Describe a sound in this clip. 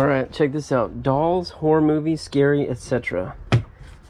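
Hands rub and tap on a plastic lid.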